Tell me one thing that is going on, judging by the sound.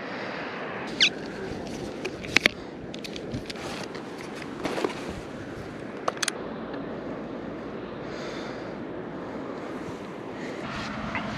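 Tripod legs click and snap into place.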